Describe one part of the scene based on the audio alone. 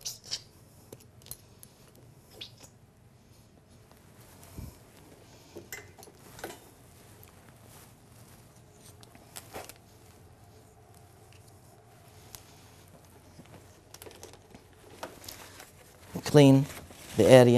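Equipment clicks and knocks softly as it is handled.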